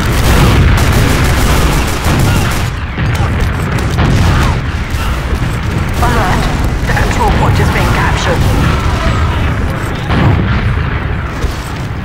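Explosions boom and rumble in quick succession.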